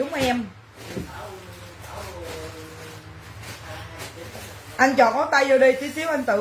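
A woman speaks close by, with animation.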